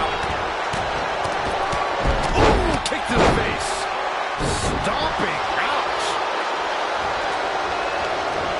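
A large crowd cheers steadily in an arena.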